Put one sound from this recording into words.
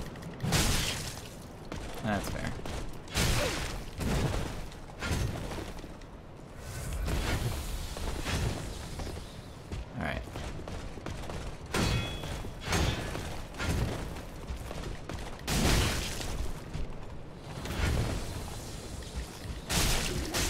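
Swords clash and slash in a game fight.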